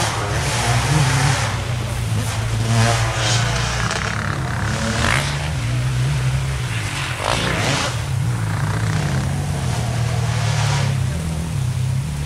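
Dirt bike engines rev and buzz loudly, rising and falling in pitch.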